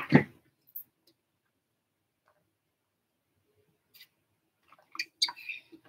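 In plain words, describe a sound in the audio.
A woman gulps water from a bottle.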